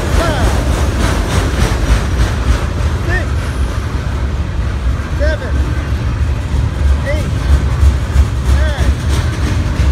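Steel wheels squeal briefly on the rails now and then.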